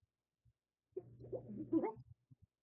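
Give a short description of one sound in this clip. Video game effects burst out loudly.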